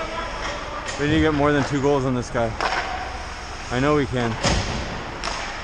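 A young man shouts loudly across the rink.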